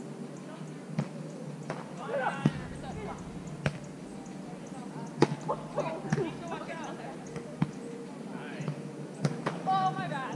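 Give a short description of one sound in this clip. A volleyball is struck with sharp thuds.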